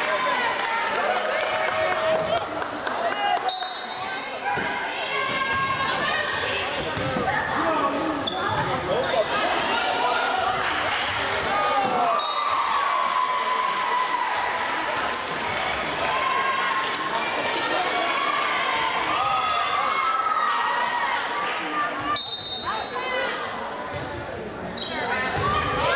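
Young women call out to each other loudly.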